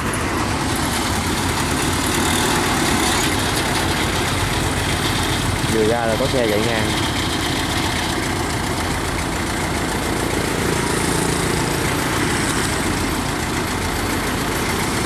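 A small diesel engine chugs loudly and steadily close by.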